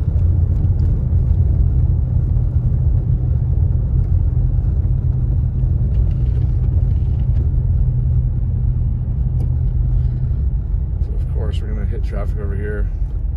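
Tyres crunch on a snowy road.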